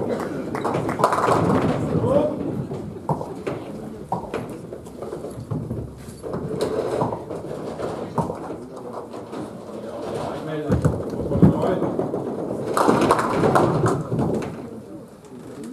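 Pins clatter as a ball strikes them.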